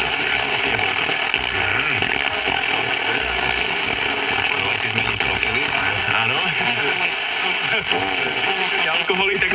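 A car radio plays loud music through its speakers.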